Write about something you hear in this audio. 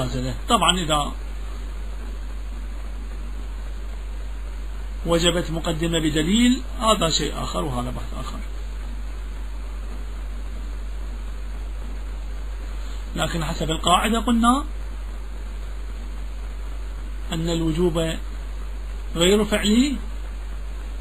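A man speaks in short bursts with long pauses, heard through a microphone.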